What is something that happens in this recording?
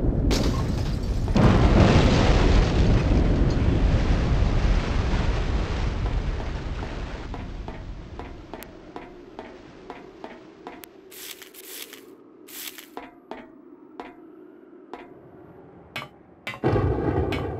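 Footsteps clang on a metal grating.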